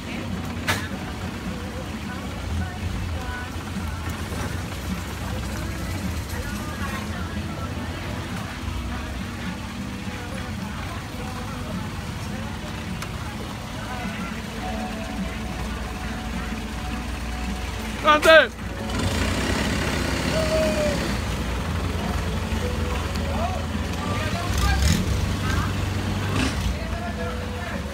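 A long-tail boat engine drones low as the boat moves along a canal.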